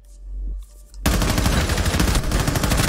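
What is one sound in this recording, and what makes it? Rapid gunshots ring out in quick bursts.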